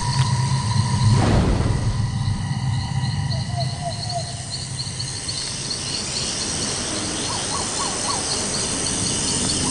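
Eerie ambient music plays steadily.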